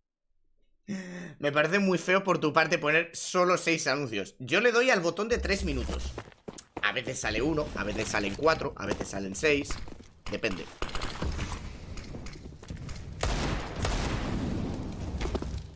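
A young man talks with animation through a headset microphone.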